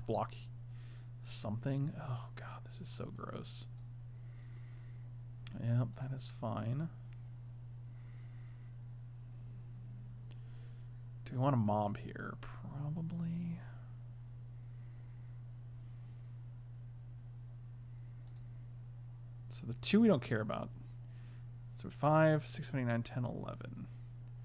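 A man speaks calmly into a close microphone, in short bursts.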